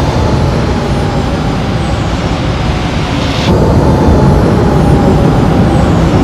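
A spacecraft's engines hum and roar steadily as it hovers.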